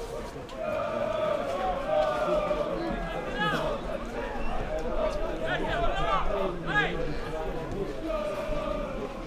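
A crowd of spectators chants and shouts in the open air.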